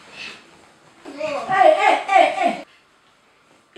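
A young boy speaks nearby.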